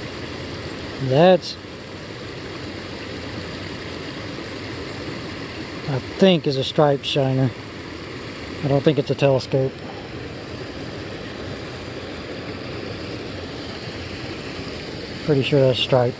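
A man speaks calmly and close by, in short bursts.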